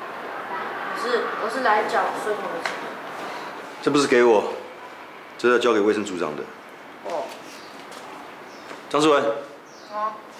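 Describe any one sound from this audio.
A boy speaks briefly close by.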